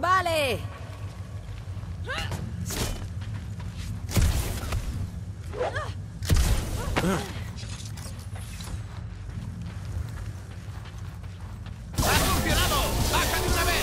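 Heavy footsteps clank on a metal floor.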